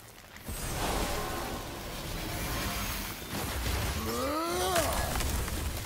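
A heavy axe strikes and shatters a crystal.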